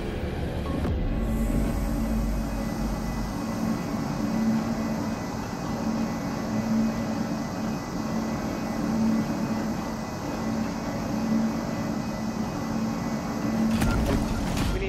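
Gas hisses steadily into a room.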